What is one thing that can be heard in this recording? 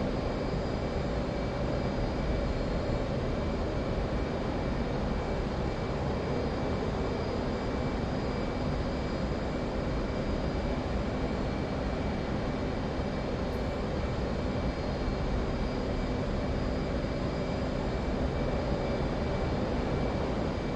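A jet engine roars steadily from inside a cockpit.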